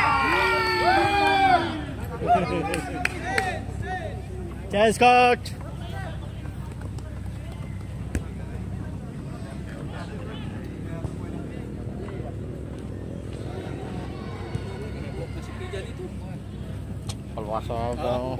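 Young men shout and call out outdoors.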